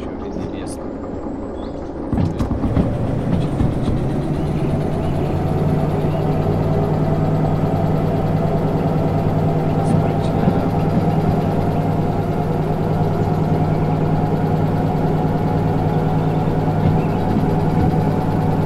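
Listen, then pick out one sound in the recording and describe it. Train wheels rumble and clack along the rails.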